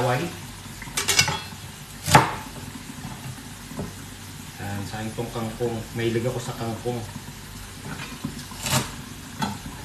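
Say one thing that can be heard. A knife chops vegetables on a cutting board.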